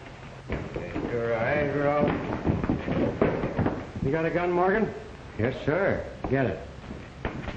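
A man speaks firmly.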